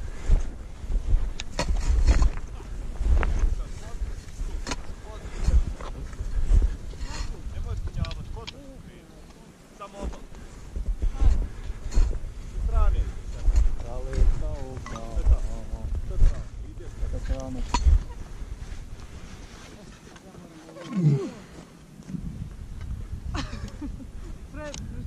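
Wind gusts roar against the microphone outdoors.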